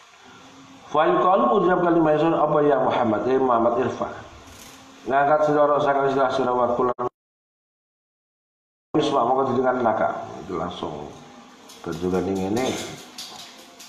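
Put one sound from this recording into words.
A man chants in a melodic voice.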